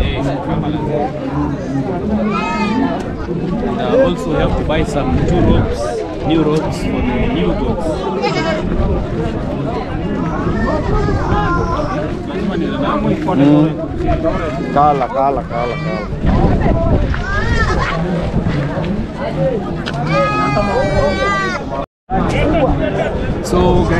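A crowd of men and women chatters loudly outdoors.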